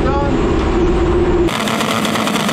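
A race car engine rumbles loudly up close.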